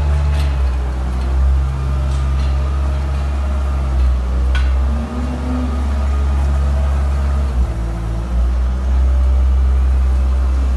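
A metal blade scrapes and pushes through loose bedding.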